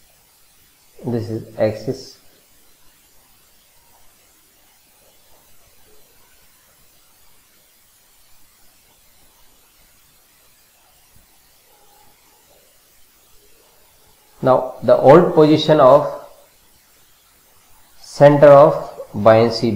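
A middle-aged man speaks calmly into a microphone in short bursts.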